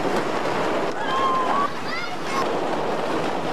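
A young woman screams.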